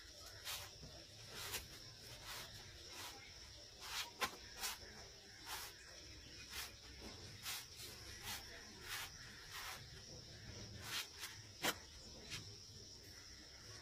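A cloth pats a flatbread on a hot pan.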